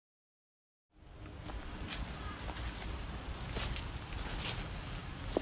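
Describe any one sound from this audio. Footsteps rustle through dense undergrowth nearby.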